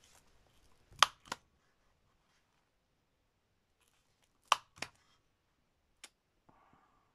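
A hand-held hole punch clicks as it punches through card.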